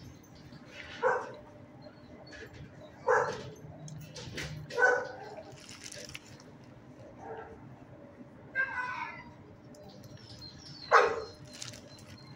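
A dog barks loudly close by.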